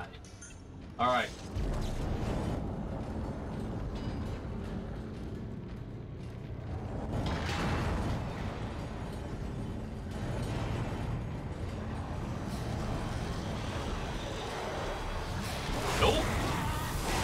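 A weapon fires with a sharp energy blast.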